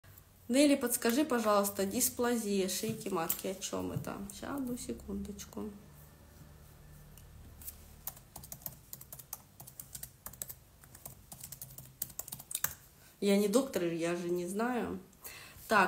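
A woman speaks calmly close by, pausing for a while between phrases.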